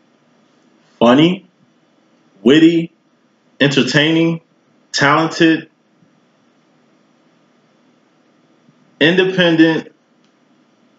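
A young man speaks up close in short, animated bursts with pauses between them.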